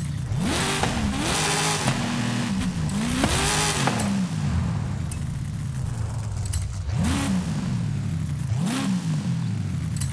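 A powerful car engine revs up sharply several times and settles back to a rumbling idle.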